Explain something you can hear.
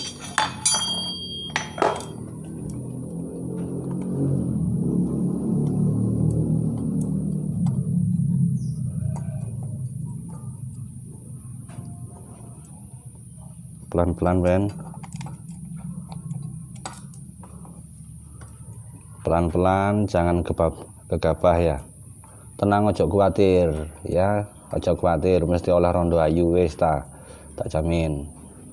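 Metal tools clink and tap against an engine part.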